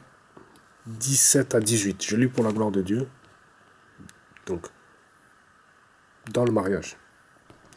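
A man speaks quietly and close up, in short bursts.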